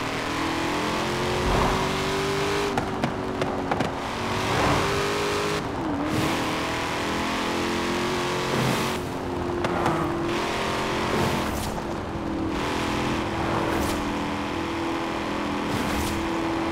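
A sports car engine roars at high speed, its pitch dipping briefly with gear shifts.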